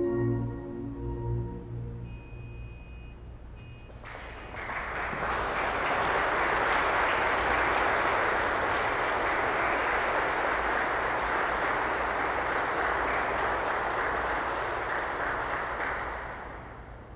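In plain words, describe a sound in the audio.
A pipe organ plays, echoing through a large hall.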